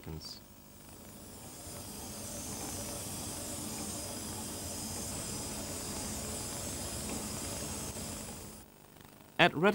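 A motorized stage whirs steadily as it slides.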